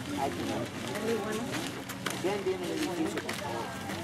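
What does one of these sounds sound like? A man speaks to a group outdoors.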